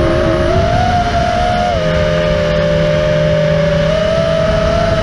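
The motors of a small quadcopter drone whine, the pitch shifting with the throttle.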